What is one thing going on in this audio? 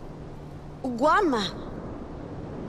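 A young woman calls out loudly nearby.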